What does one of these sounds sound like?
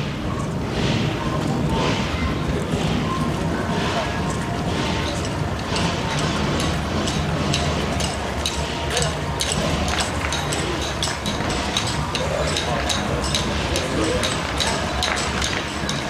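Footsteps shuffle on pavement as a group walks past.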